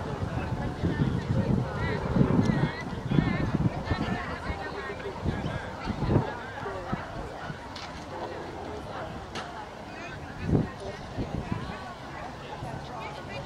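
Adult men and women chatter nearby outdoors.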